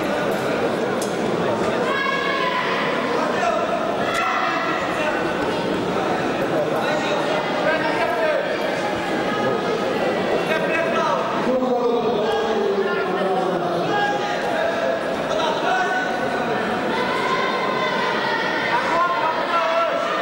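A crowd of spectators talks and shouts in a large echoing hall.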